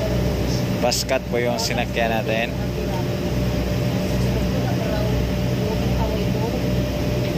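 An older man speaks briefly nearby.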